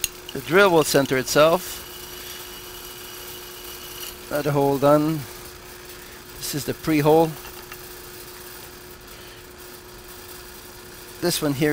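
A drill press whirs steadily as its bit bores into metal.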